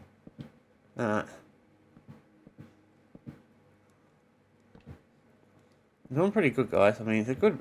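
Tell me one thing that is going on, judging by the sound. A middle-aged man speaks casually and close to a microphone.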